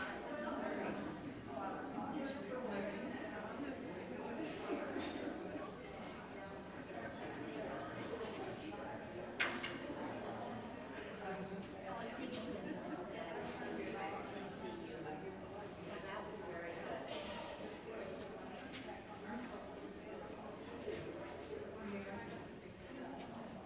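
Many adult men and women chat quietly nearby, their voices echoing in a large hall.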